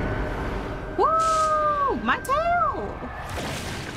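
A wolf howls loudly, twice.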